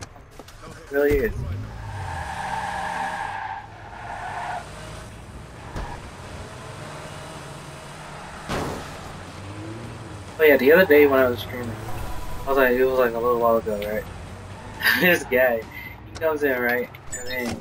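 A car engine starts and revs as a car drives off.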